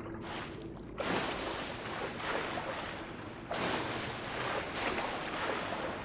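A game character splashes while swimming through water.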